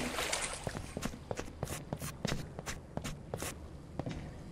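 Footsteps tap evenly on a hard tiled floor in an echoing space.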